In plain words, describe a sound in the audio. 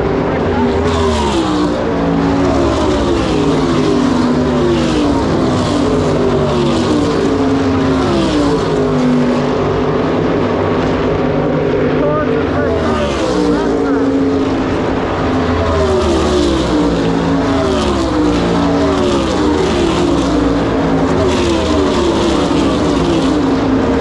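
Race cars roar past one after another, their engines whining down in pitch.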